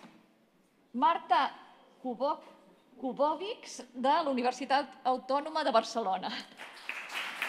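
A woman speaks calmly through a microphone in a large hall.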